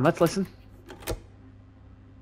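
A cassette player's button clicks down.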